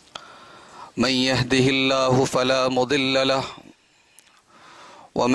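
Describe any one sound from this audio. A young man chants in a drawn-out, melodic voice through a microphone.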